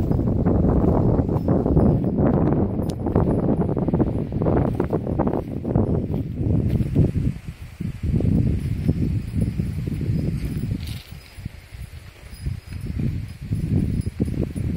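Leafy branches rustle and swish as they are carried along.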